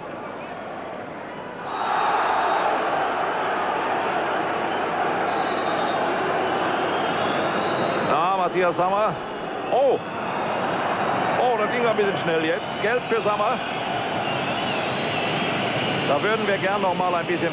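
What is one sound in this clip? A large stadium crowd roars loudly outdoors.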